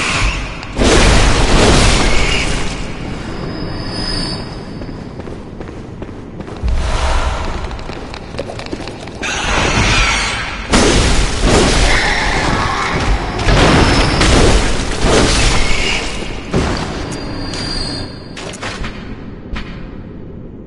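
A blade slashes and tears into flesh in loud, fast bursts.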